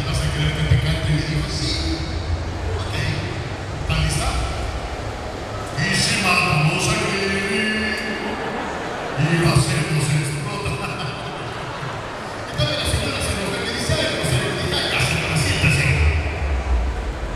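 A young man speaks with animation through a microphone and loudspeakers in a large echoing hall.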